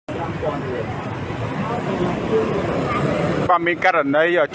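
A crowd of people chatters in a busy street.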